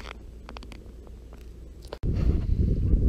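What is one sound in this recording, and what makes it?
Water gurgles and bubbles, heard from underwater.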